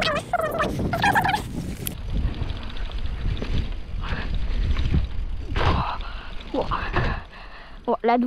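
Bike tyres rumble and crunch over loose dirt.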